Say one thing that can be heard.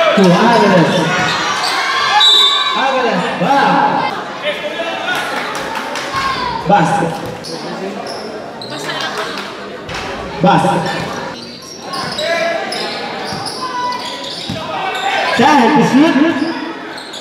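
A crowd of spectators shouts and cheers loudly outdoors.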